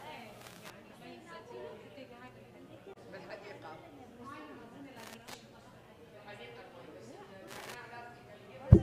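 Several adult men and women talk quietly at a distance in a reverberant hall.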